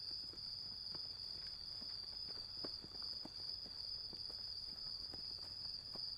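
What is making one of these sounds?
Footsteps crunch softly on dry ground.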